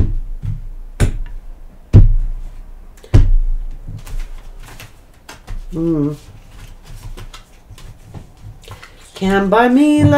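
Cards thump and shuffle on a table.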